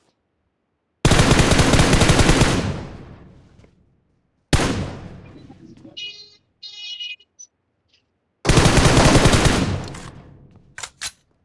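Loud rifle gunshots boom and echo away.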